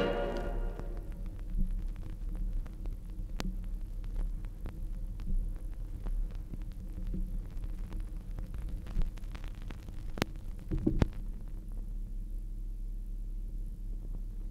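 A low hum drones steadily from a record player.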